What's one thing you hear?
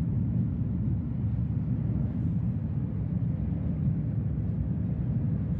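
A train rumbles steadily along the tracks at high speed, heard from inside a carriage.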